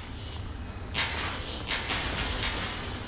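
Electric sparks crackle and buzz.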